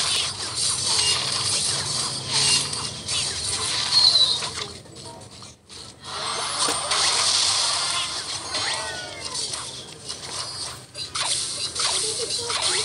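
Game sound effects of battling troops clash and burst throughout.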